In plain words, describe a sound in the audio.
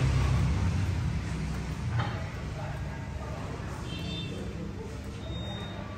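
Footsteps climb wooden stairs.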